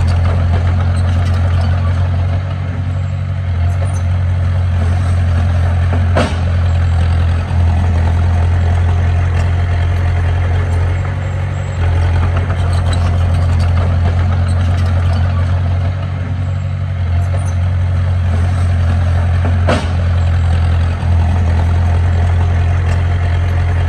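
A bulldozer's metal tracks clank and squeak as it pushes soil.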